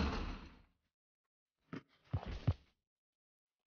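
A basketball swishes through a hoop's net.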